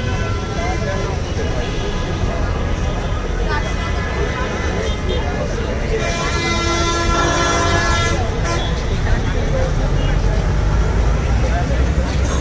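A crowd of young men chatter nearby outdoors.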